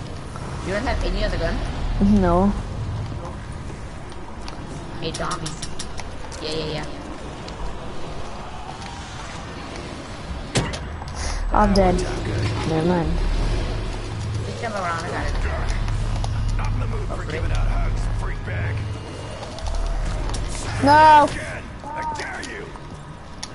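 A young boy talks with animation, close to a microphone.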